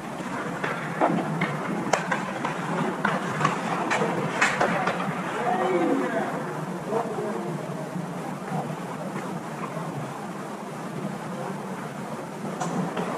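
Ice hockey sticks clack against a puck and the ice.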